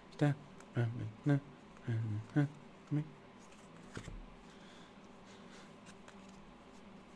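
Trading cards shuffle and rub against each other.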